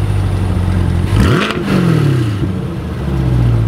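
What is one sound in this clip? A sports car engine revs up sharply and settles back.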